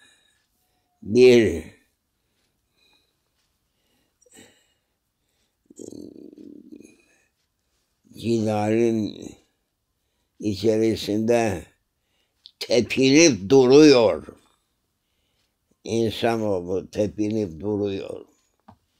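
An elderly man speaks slowly and calmly in short phrases, close by.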